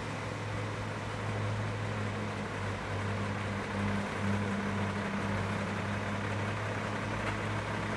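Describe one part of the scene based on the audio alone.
A car engine hums as the car drives slowly along a road.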